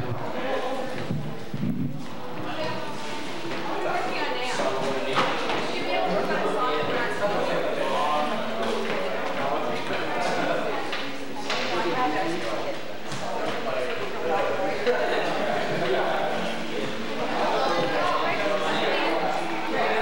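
A young woman talks nearby in a room with a slight echo.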